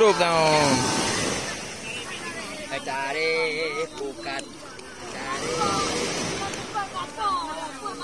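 Small waves splash and wash onto the shore.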